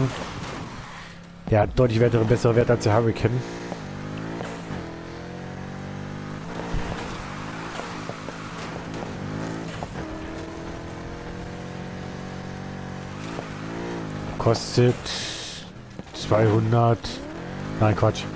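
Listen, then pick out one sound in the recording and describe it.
A car engine roars and revs up and down.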